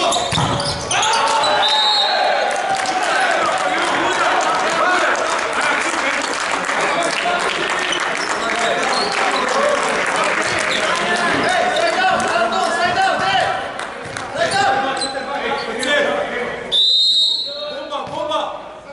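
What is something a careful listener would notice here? Men shout and call to each other across a large echoing hall.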